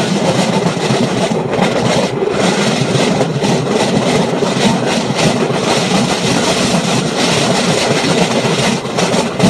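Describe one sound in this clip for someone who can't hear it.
A rail vehicle rumbles and clatters steadily along railway tracks.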